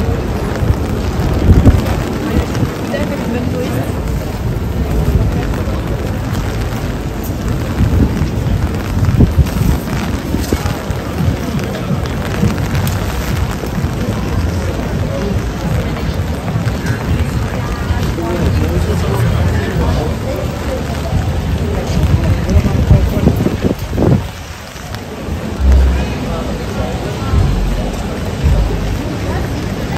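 Rain patters softly on umbrellas.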